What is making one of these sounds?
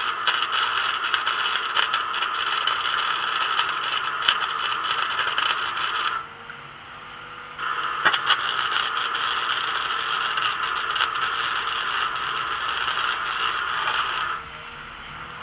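An arc welder crackles and sizzles steadily in bursts.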